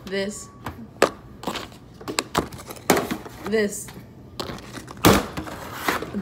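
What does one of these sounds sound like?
Cardboard snack tubes knock and clatter on a table.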